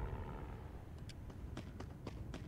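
Boots shuffle on gritty ground close by.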